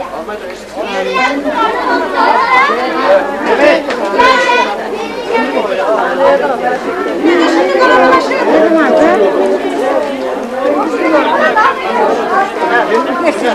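A crowd of men and women talk and call out outdoors.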